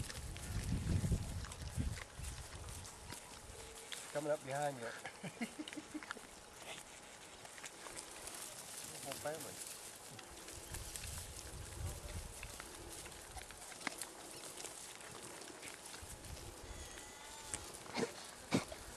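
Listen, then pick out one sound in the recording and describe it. A small animal's hooves rustle through dry grass.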